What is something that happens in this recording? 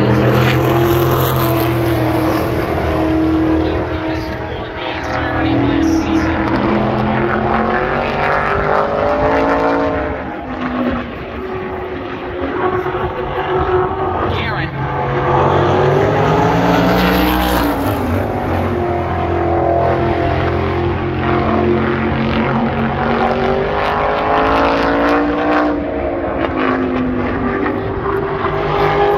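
Race car engines roar loudly around a track, rising and falling in pitch.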